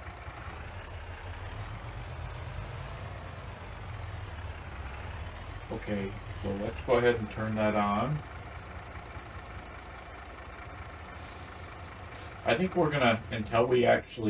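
A heavy truck engine idles with a low, steady rumble.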